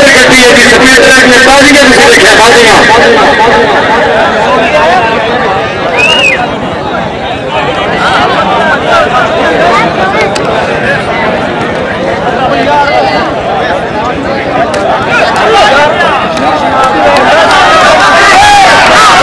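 A large outdoor crowd chatters and murmurs.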